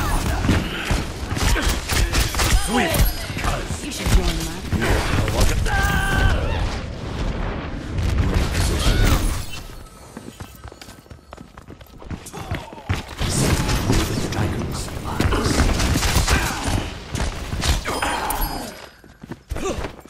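A bow twangs as arrows are loosed in quick bursts.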